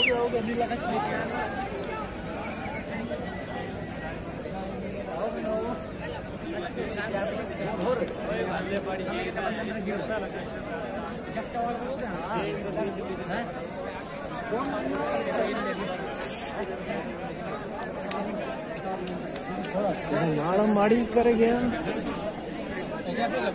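A crowd of young men and women chatters outdoors.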